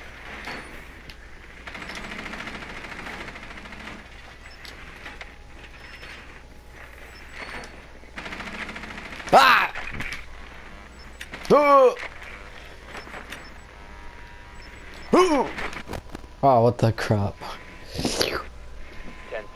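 A small remote-controlled drone whirs as it rolls across a hard floor.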